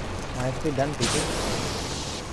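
Electricity crackles and zaps close by.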